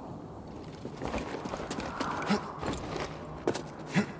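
Footsteps crunch over rock.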